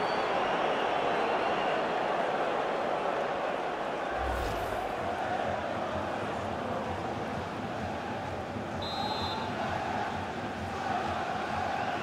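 A large stadium crowd roars and murmurs.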